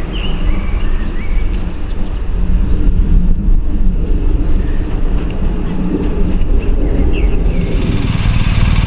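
A diesel locomotive rumbles as it pulls away.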